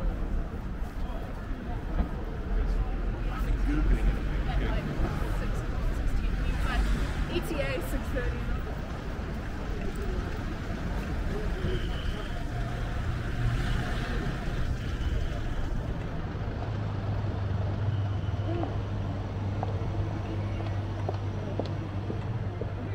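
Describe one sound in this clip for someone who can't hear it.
Footsteps fall steadily on pavement outdoors.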